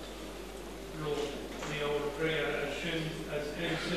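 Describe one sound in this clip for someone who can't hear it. A man chants a prayer in a steady voice, in an echoing room.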